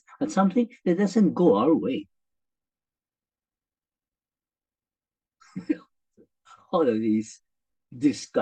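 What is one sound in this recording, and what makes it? A middle-aged man speaks with animation through a microphone on an online call.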